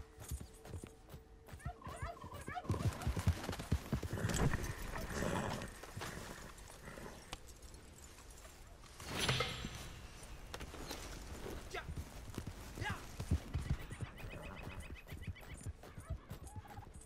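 Horse hooves thud on soft forest ground.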